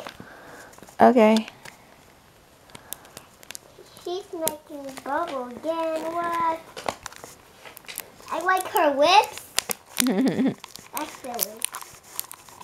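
A young girl talks and sings in a high voice close by.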